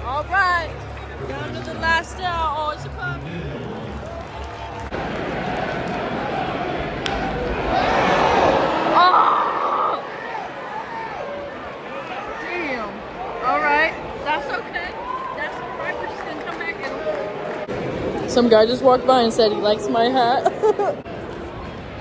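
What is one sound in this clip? Nearby spectators, men and women, talk and call out loudly.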